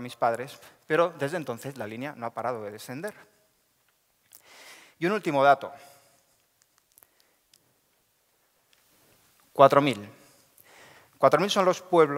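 A man speaks calmly through a microphone in a large hall, with pauses.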